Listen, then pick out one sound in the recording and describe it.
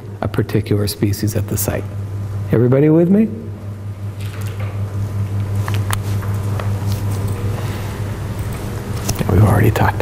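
A steady low electrical hum drones.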